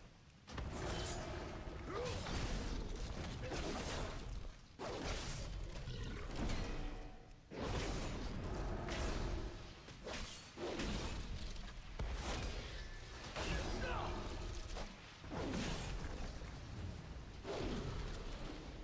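Video game combat sounds clash, with weapon strikes and spell effects.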